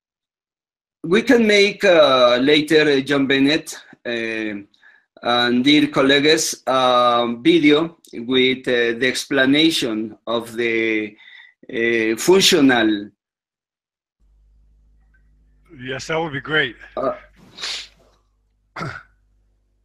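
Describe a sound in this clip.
A man explains calmly, heard through an online call.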